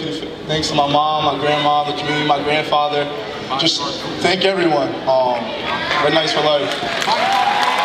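A young man speaks into a microphone over loudspeakers in a large echoing hall.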